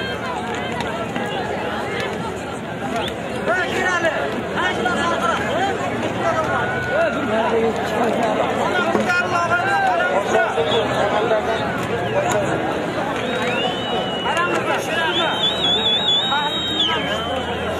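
A large crowd of men shouts and chatters outdoors.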